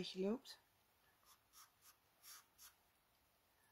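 A pencil scratches softly on paper in short strokes.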